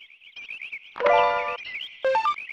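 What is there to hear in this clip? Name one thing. A bright electronic chime rings out once.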